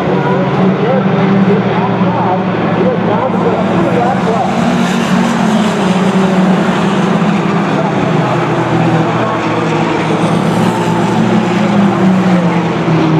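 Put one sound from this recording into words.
Mini stock race cars roar past at racing speed.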